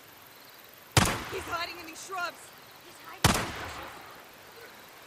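A rifle fires twice with loud sharp cracks that echo away.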